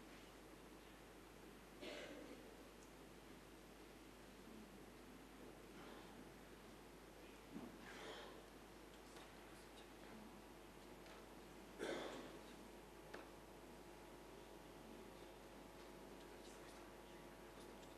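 A congregation shuffles and rustles quietly in a large echoing hall.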